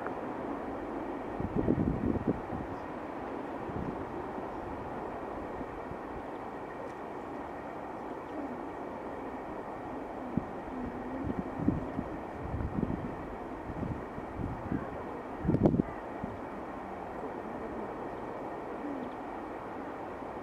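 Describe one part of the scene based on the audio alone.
A huge flock of birds whooshes softly overhead on the wing.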